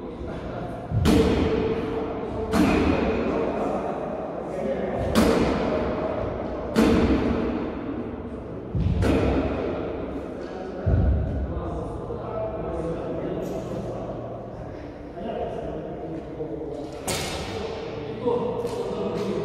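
Swords clash with sharp cracks in a large echoing hall.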